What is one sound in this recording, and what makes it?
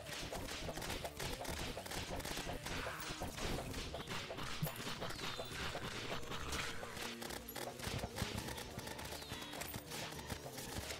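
Video game combat effects crackle and pop rapidly as attacks hit.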